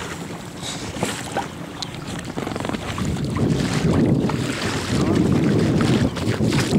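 Choppy water laps and splashes close by.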